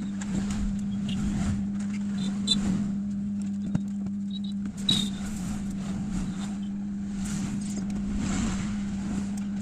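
A phone clicks and taps against a hard surface.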